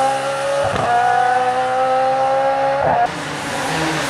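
A rally car engine screams at high revs as the car speeds away.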